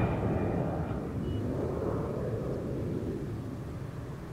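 A jet airliner rumbles as it approaches to land.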